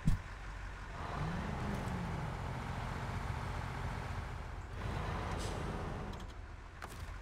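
A heavy truck engine rumbles and revs.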